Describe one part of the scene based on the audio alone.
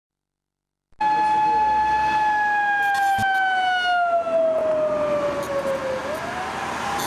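A rally car engine roars past at high revs, its pitch dropping as it goes by.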